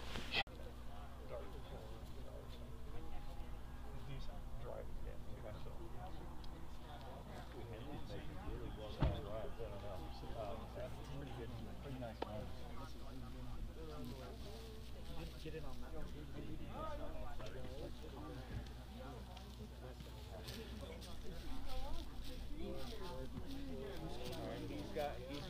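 A group of young people talk and call out at a distance, outdoors in the open.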